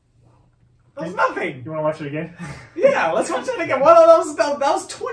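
A young man talks and laughs with animation close by.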